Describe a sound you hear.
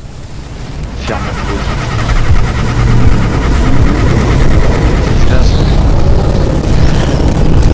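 A car engine revs up and roars louder.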